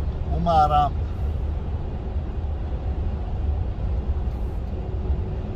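A truck engine rumbles low and steady from inside the cab.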